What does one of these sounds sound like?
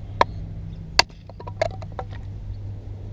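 Wood splits and cracks apart.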